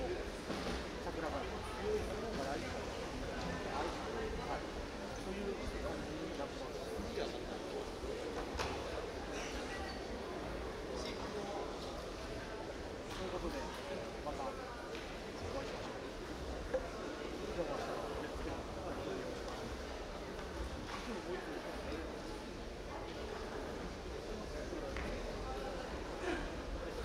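Young men talk casually close by in a large echoing hall.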